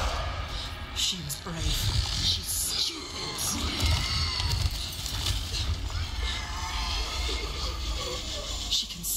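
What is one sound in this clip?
A creature snarls and growls close by.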